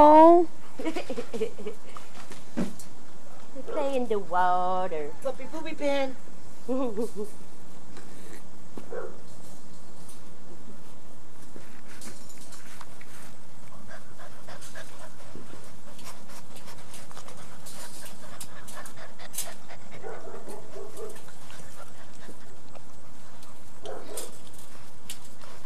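Puppies rustle through the grass.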